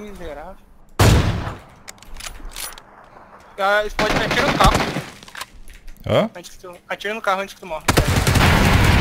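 Gunshots crack close by.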